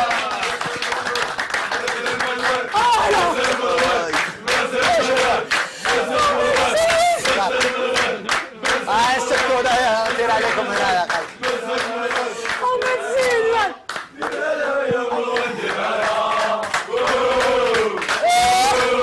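An audience claps along in rhythm.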